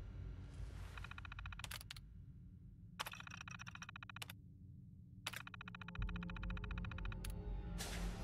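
A computer terminal chatters with rapid beeping clicks as text prints out.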